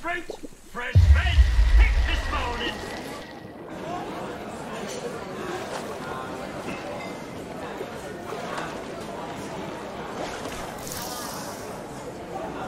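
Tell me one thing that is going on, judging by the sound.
Water sloshes and ripples as something swims.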